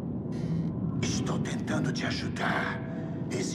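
A man speaks in a deep, menacing voice.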